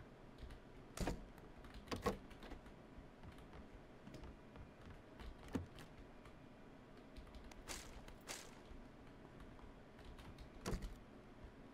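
A wooden door opens and shuts with sharp knocks.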